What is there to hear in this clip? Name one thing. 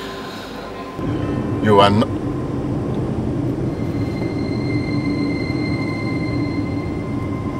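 A car engine hums steadily with road noise as the car drives.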